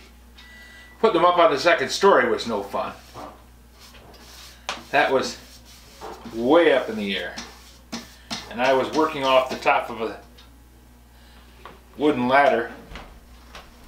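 A middle-aged man talks calmly, close by, in pauses.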